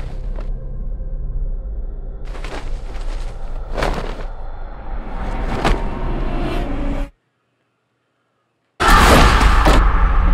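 A sheet rustles as it shifts and is pulled away.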